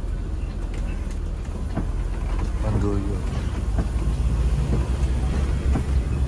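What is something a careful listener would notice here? Windshield wipers swish across the glass.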